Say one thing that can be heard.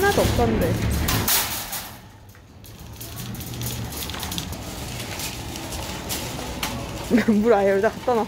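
A metal shopping cart rattles as it is pulled free and rolled along a hard floor.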